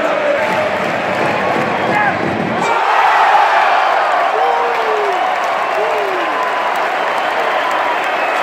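A large stadium crowd roars and whistles loudly all around.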